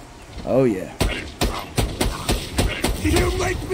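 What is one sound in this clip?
A rifle fires a rapid series of loud shots.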